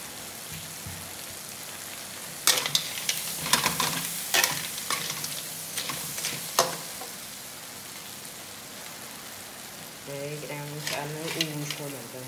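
Food sizzles in hot oil.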